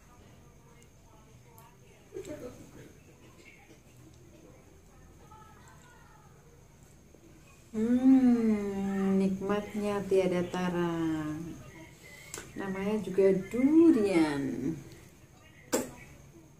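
A woman chews and smacks her lips while eating.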